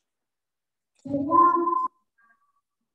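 A girl speaks briefly through a microphone.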